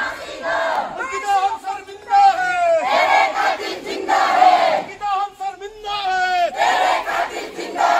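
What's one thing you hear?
A man leads the chanting, shouting slogans close by.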